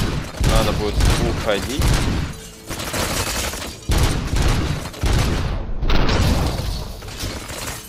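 Gunshots boom in rapid bursts.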